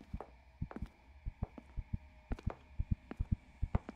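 Footsteps tap quickly on a wooden floor.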